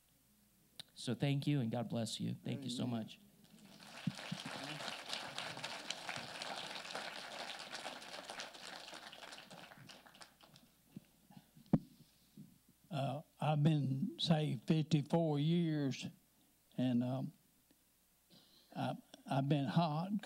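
A man speaks calmly through a microphone in an echoing hall.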